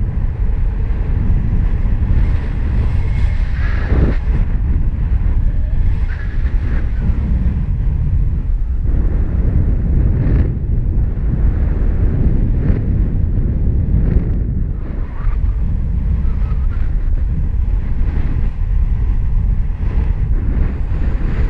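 Strong wind rushes and buffets past steadily.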